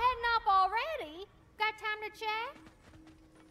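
A boy speaks in a lively voice.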